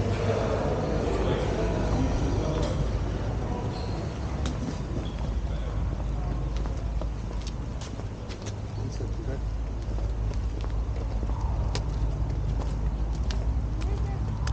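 Footsteps tap on hard paving outdoors.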